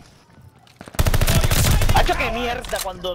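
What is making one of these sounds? A submachine gun fires a rapid, loud burst.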